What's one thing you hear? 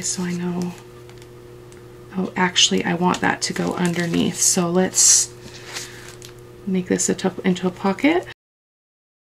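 Paper rustles and scrapes as hands handle it.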